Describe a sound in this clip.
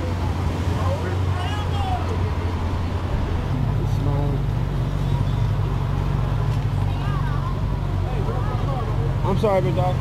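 A crowd of people chatters nearby outdoors.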